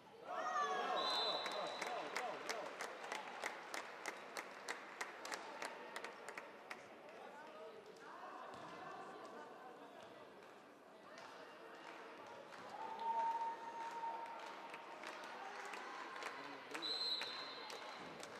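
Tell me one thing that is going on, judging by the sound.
A referee's whistle blows shortly.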